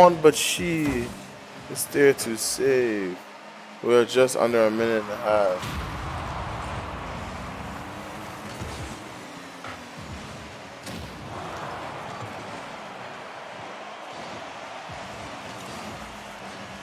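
Rocket-powered cars whoosh and roar around the arena.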